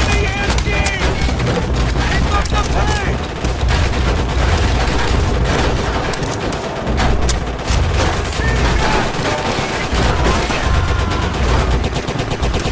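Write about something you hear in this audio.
Distant gunfire and explosions rumble throughout.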